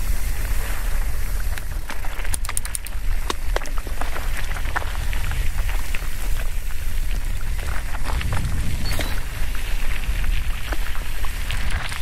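A bicycle frame clatters and ticks over bumps.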